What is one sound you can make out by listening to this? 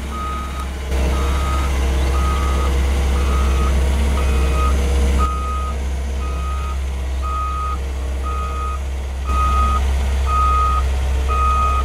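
A reversing alarm beeps at an even pace.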